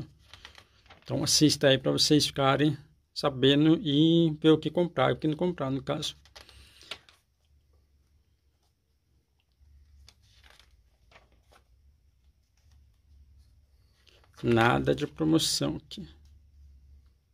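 Glossy magazine pages rustle as they are turned.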